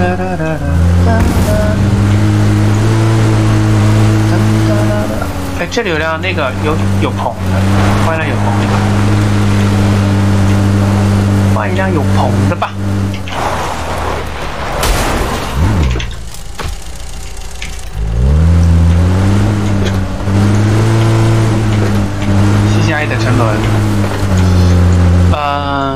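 A vehicle engine drones and revs as it drives.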